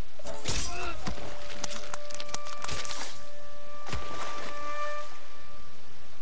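A sword slashes and strikes with sharp metallic hits.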